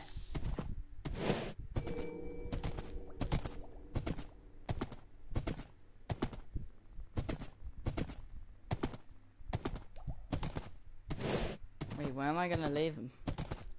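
A horse's hooves clop steadily on grass.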